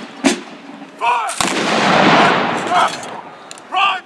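A volley of musket fire booms outdoors and echoes away.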